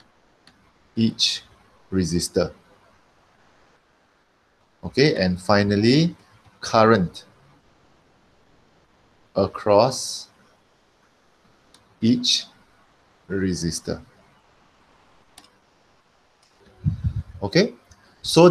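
A man speaks calmly in short phrases through a microphone, as if explaining.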